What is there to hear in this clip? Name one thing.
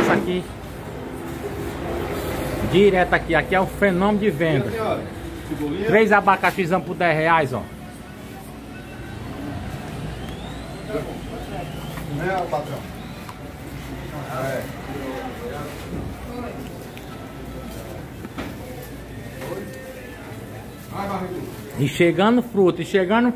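Shoppers chat quietly in the background.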